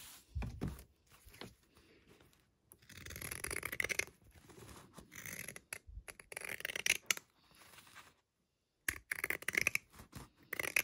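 Scissors snip through fabric with crisp, repeated crunches.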